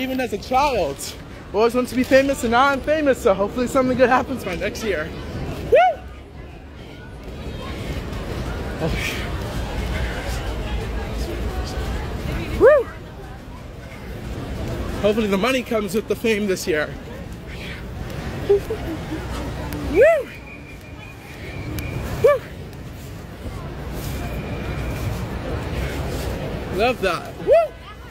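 A crowd of people chatters and calls out nearby outdoors.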